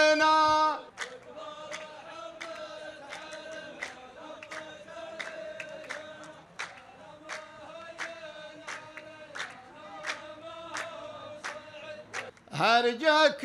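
A group of men sing a chant together.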